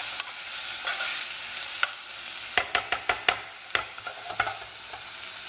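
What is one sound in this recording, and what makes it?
A spoon scrapes and clacks against a metal pot.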